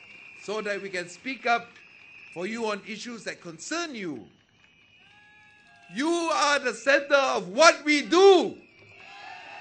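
A man speaks forcefully into a microphone, his voice amplified over loudspeakers.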